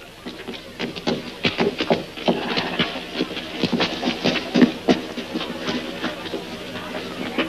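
Horses' hooves clop and shuffle on dirt.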